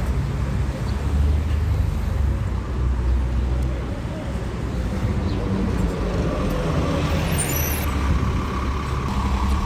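A city bus engine rumbles as the bus pulls up and passes close by.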